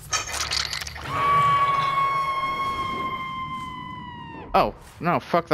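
A young woman screams in pain.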